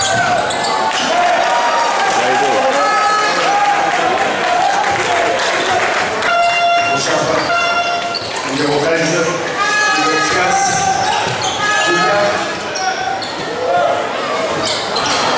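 A crowd murmurs in a large echoing hall.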